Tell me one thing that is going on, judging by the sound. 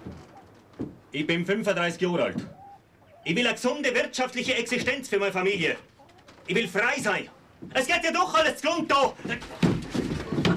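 A man talks loudly nearby.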